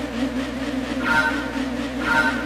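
A countdown beep sounds twice.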